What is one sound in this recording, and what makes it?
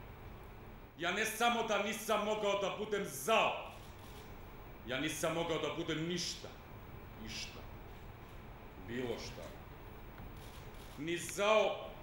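A man speaks slowly and with emotion, heard in a large room.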